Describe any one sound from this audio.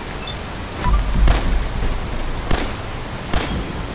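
Pistol shots bang loudly.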